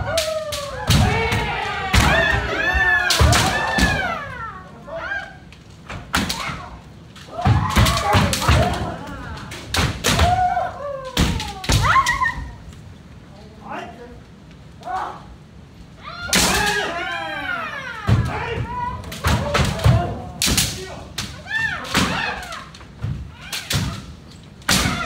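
Bamboo swords clack sharply against each other and against armour.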